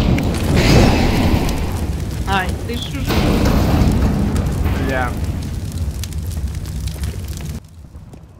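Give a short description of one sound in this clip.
Fire roars and crackles nearby.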